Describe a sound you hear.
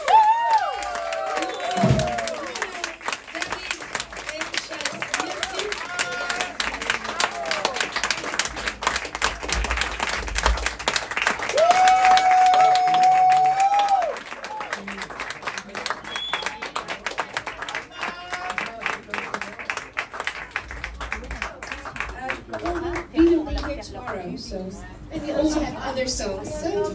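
A saxophone plays.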